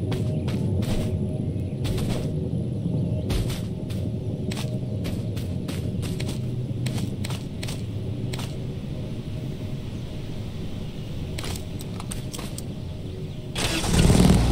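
Footsteps crunch through undergrowth in quick steps.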